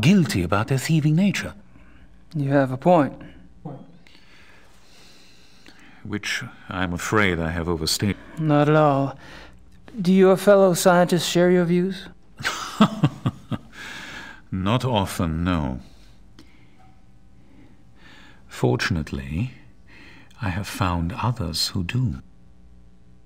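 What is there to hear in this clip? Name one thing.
A middle-aged man speaks calmly, heard through a recording.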